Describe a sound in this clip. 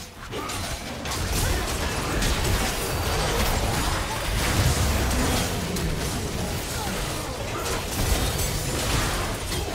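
Game spells and attacks crackle and boom in a hectic fight.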